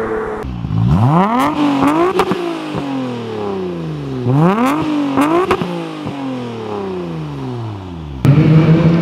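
A car exhaust pops and crackles between revs.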